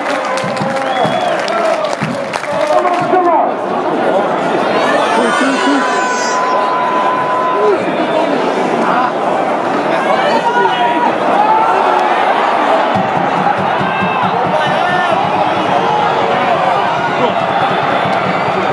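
A large stadium crowd chants and sings loudly in a wide open space.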